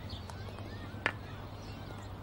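A golf club taps a ball.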